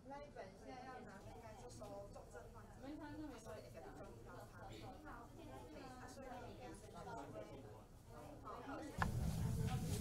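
A woman speaks calmly at close range.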